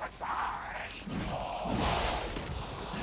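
A weapon swishes and strikes in a fight.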